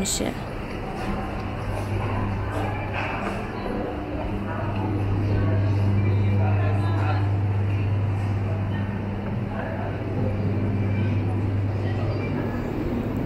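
Refrigerators hum steadily.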